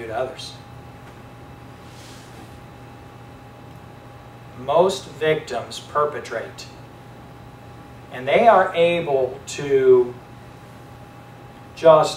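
A man speaks slowly, with long pauses.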